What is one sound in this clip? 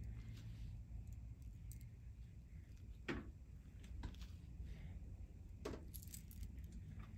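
Hair rustles softly as fingers part and twist it.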